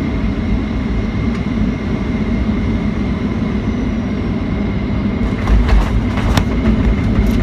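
Wheels rumble and thump on the runway.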